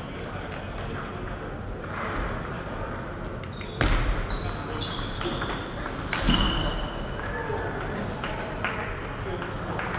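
A ball clicks back and forth between paddles and a table in an echoing hall.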